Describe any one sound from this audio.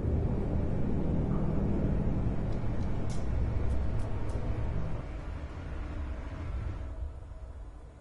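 A spaceship engine rumbles loudly and steadily.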